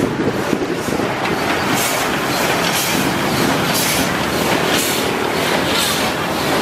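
A steam locomotive chuffs in loud, regular bursts close by.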